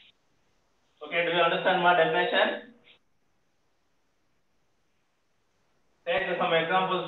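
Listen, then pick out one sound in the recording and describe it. A man speaks in lecture style, heard over an online call.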